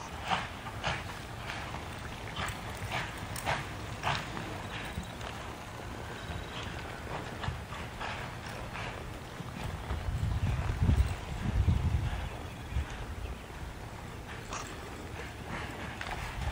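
Horse hooves thud and scuff on soft dirt.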